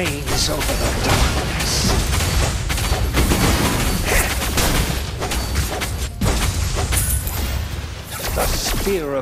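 Magic spells blast and crackle in a fast fight.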